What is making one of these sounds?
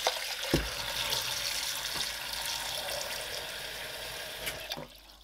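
Water from a tap pours steadily into a plastic jug, with a rising gurgle as it fills.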